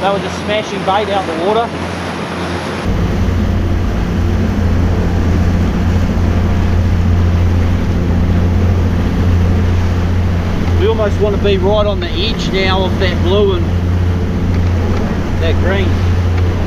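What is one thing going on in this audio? Water churns and rushes behind a moving boat.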